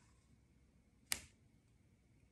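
A plastic cutting board is set down on a stone counter with a knock.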